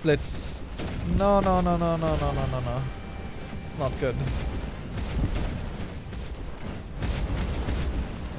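Game combat sounds of blasts and clashes play.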